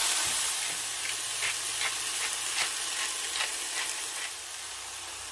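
A pepper mill grinds with quick crackling clicks.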